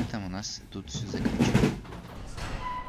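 Feet thud on a sprung floor as a gymnast tumbles.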